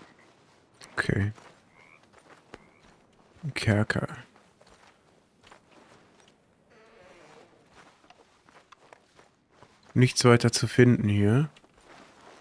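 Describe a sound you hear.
A man talks into a close microphone in short bursts, with animation.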